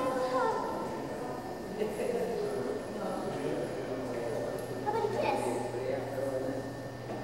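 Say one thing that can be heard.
A woman speaks softly and playfully to a toddler close by.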